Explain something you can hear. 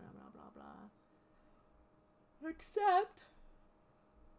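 A young woman speaks briefly and casually over an online call.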